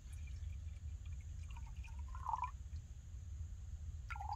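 Water pours from a plastic bottle into a metal pot.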